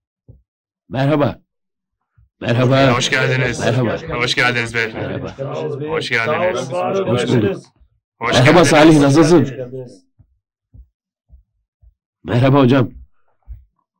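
An older man speaks with animation to a group of men.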